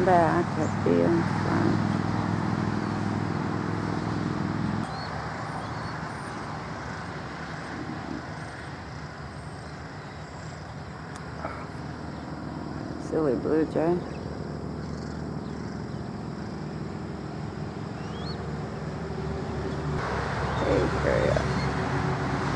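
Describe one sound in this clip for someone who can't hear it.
An eagle gives high, chattering calls nearby.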